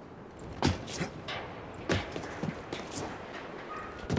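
Metal stairs clank under quick footsteps.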